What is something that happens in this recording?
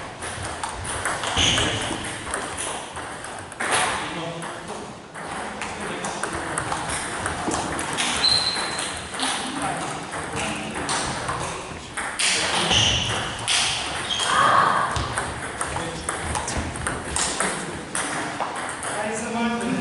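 A table tennis ball clicks back and forth on paddles and a table in a large echoing hall.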